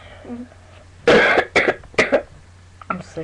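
A boy coughs into a hand a few times.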